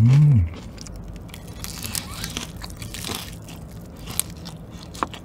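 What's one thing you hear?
A man bites and crunches crispy fried chicken close to a microphone.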